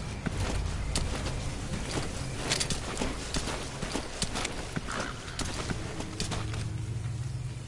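A dog scuffles and rustles over dry ground.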